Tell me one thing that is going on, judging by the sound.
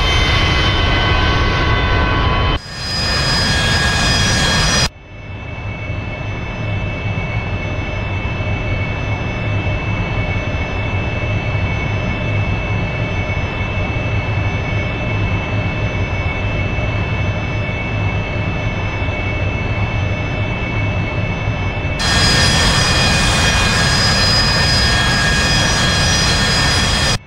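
A jet engine roars loudly and steadily.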